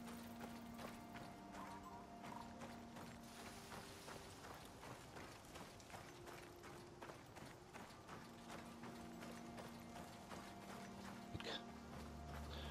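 Footsteps crunch steadily on gravel and grass.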